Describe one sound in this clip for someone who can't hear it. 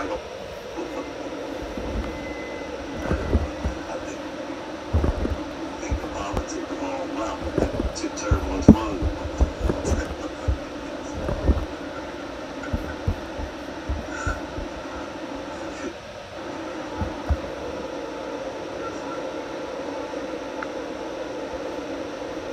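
Jet engines drone steadily inside an aircraft cabin.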